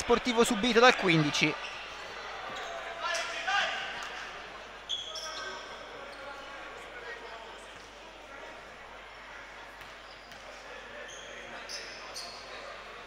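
A small crowd of spectators murmurs in the distance.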